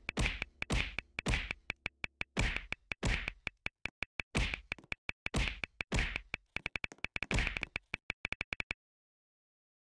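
Rapid punching hits thump over and over.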